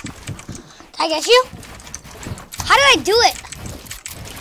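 A young boy exclaims loudly into a microphone.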